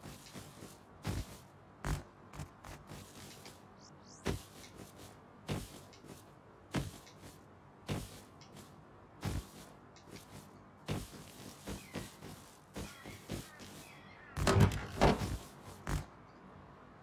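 Footsteps thud on grass and rock at a steady pace.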